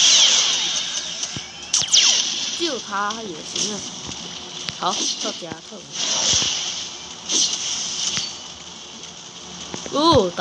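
Blows and magic blasts crash and whoosh in a battle.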